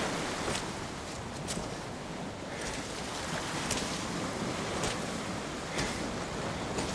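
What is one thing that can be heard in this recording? Footsteps crunch on sand at a steady pace.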